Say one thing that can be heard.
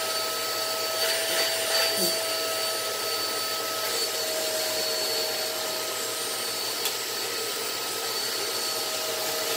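Plastic vacuum parts click and rattle as they are handled.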